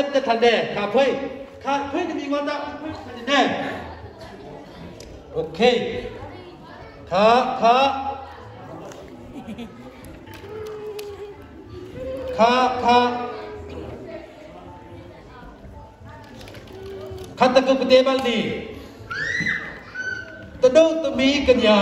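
A man speaks with animation into a microphone, heard over loudspeakers in an echoing hall.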